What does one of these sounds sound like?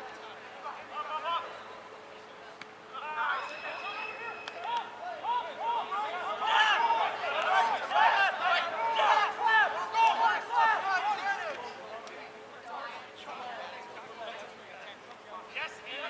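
Several young men and women shout and call out across a field outdoors.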